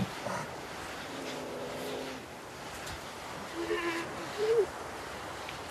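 A sea lion bellows loudly.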